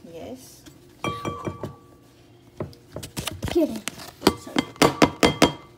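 A glass bowl clinks and knocks against another bowl.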